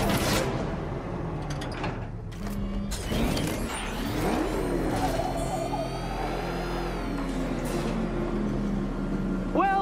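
A powerful car engine rumbles.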